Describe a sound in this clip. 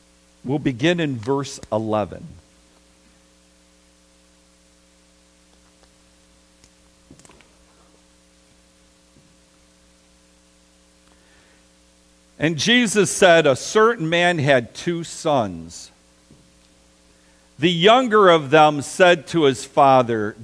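A middle-aged man speaks through a microphone with animation.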